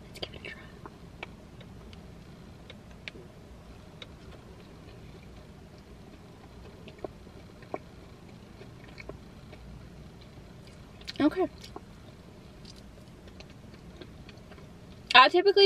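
A young woman chews food with soft, wet smacks.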